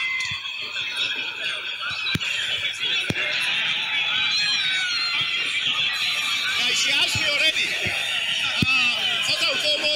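A crowd of men chatters and murmurs around.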